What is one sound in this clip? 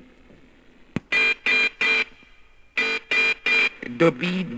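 A robot gives out short electronic beeps.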